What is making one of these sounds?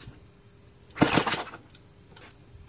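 A small model engine sputters briefly and stops.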